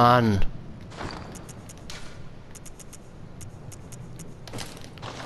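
Short soft clicks tick in quick succession.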